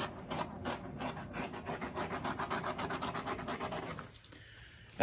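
Thick paint squelches out of a squeezed tube.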